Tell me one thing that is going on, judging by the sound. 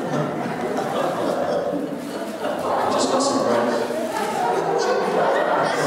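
A man speaks through a microphone in an echoing room.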